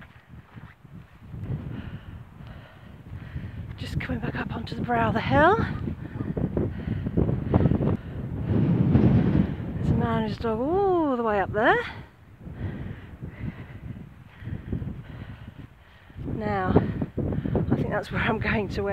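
Dry grass rustles in the wind.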